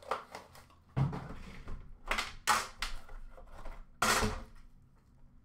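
A cardboard box thumps and scrapes as it is handled.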